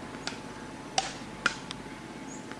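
A wooden paddle sharply smacks a ball back and forth, outdoors.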